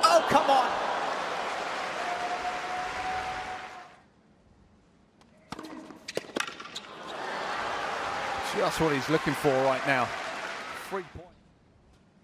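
A crowd applauds and cheers in a large arena.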